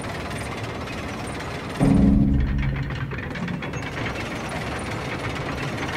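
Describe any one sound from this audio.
Large gears grind and rumble steadily.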